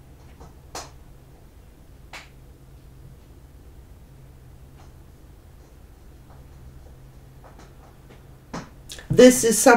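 Cards shuffle softly in a woman's hands.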